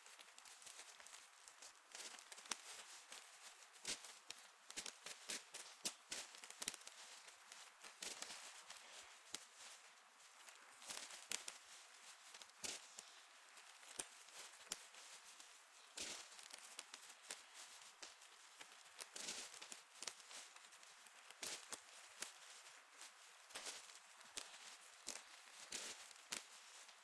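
Two people shuffle decks of cards with quick riffling.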